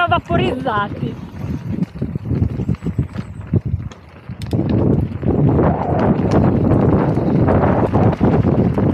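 Wind buffets the microphone as the bike moves.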